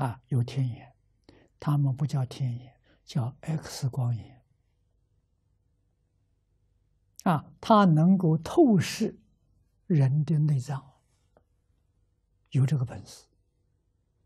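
An elderly man speaks calmly and closely into a microphone, with pauses.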